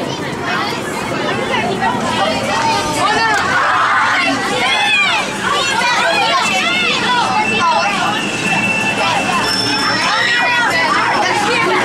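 Children chatter and call out excitedly.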